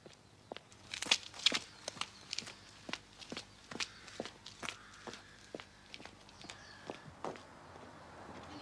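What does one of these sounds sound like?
Footsteps tap on a road.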